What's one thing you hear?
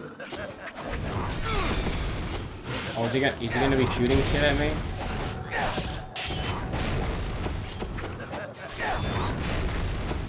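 Magic blasts burst with a loud whoosh.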